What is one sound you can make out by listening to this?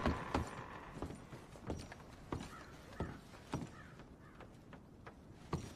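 Boots thud on wooden floorboards.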